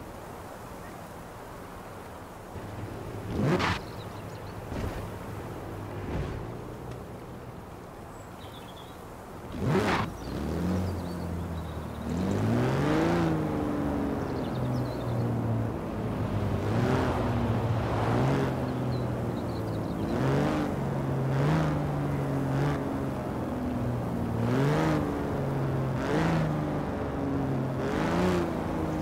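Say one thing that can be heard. A car engine revs up and down as it shifts through gears.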